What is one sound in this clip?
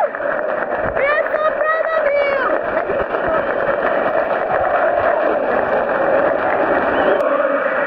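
Fans nearby clap their hands.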